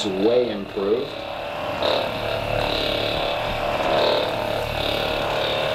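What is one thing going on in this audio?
A massage gun buzzes steadily.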